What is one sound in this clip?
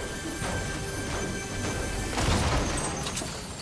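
A pickaxe clangs against a metal car body.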